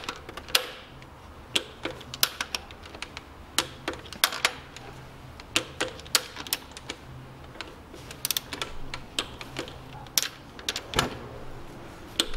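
A ratchet wrench clicks in short bursts as a bolt is turned.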